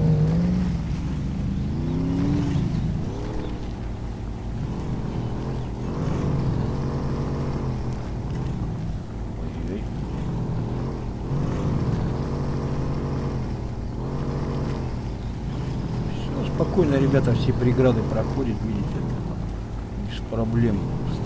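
A car engine revs and labours, rising and falling in pitch.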